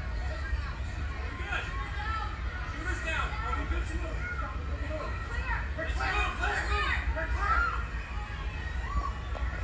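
A crowd shouts and cries out through a television speaker.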